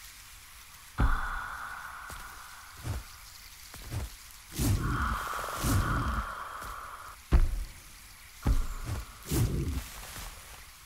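Heavy thuds sound as something jumps and lands.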